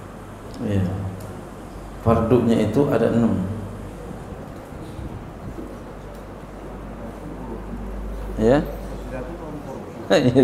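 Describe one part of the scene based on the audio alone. A man speaks calmly into a microphone, with long pauses.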